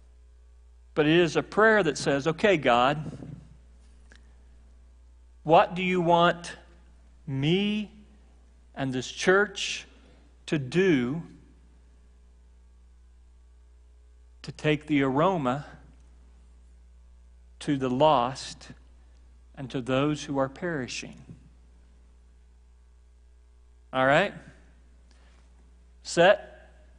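A middle-aged man speaks calmly in bursts with pauses, heard through a microphone.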